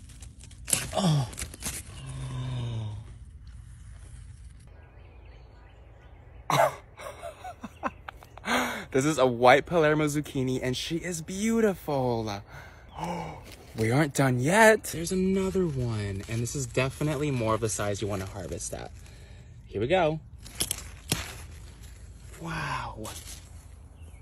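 A young man talks with animation close by, with excited exclamations.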